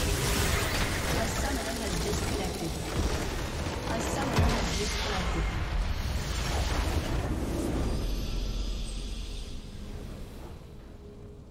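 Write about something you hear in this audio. Fantasy battle sounds of spells and blasts crash and whoosh loudly, then fade away.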